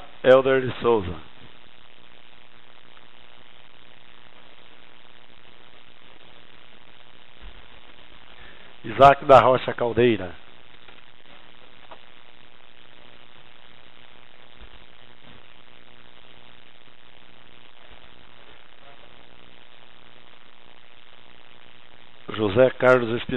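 A man speaks briefly into a microphone in an echoing hall.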